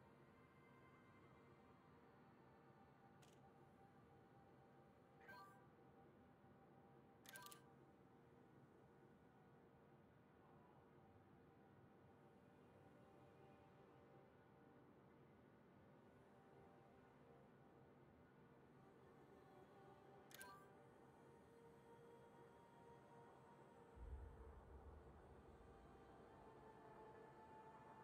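A spacecraft engine hums low and steady.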